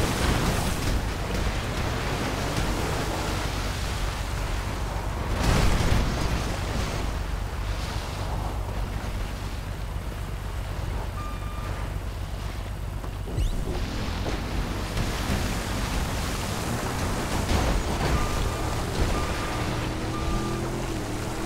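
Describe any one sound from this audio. Vehicle engines rumble and rev close by.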